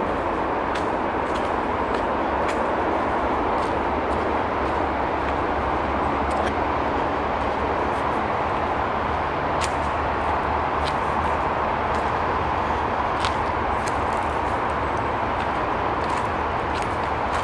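Footsteps crunch on dry leaves along a dirt path outdoors.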